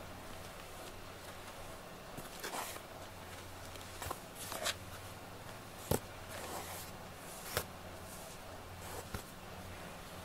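A hand rustles softly as it strokes a cat's fur.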